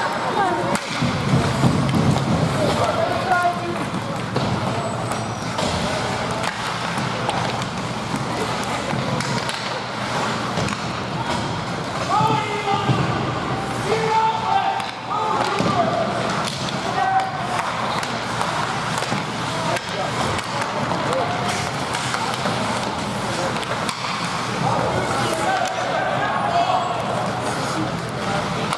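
Skates scrape and swish across the ice.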